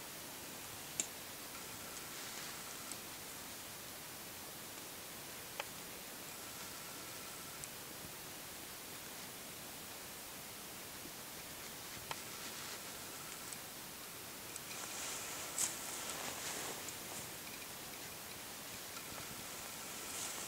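A moose carcass is dragged over dry leaves and forest litter.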